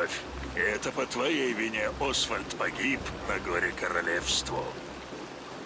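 An elderly man speaks calmly and gravely up close.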